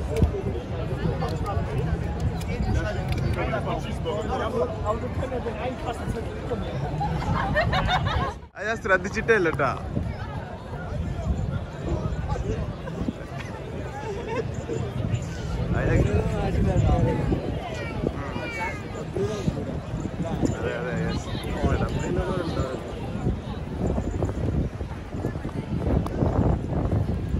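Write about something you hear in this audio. A crowd of men and women chatters and calls out nearby outdoors.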